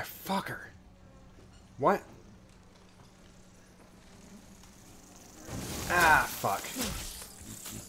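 A young man speaks in short bursts close to a microphone.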